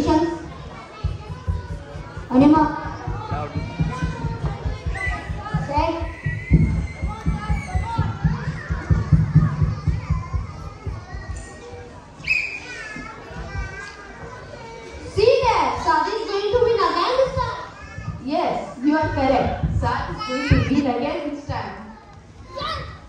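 A boy speaks loudly and with animation through a microphone in a large echoing hall.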